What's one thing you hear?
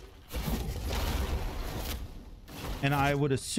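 Fiery magic blasts crackle and roar.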